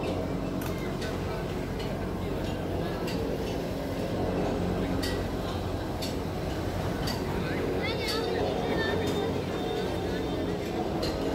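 Cable car machinery hums steadily.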